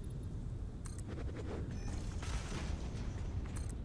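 Debris crashes and scatters in a game.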